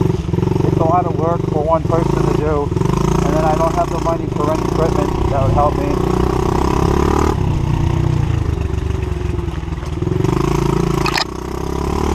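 A dirt bike engine roars close by, revving up and down.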